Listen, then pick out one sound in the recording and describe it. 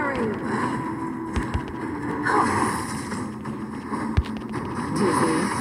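Fighting sounds clash and whoosh in quick bursts.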